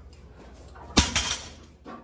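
Heavy weight plates clank as a loaded barbell is dropped on the floor.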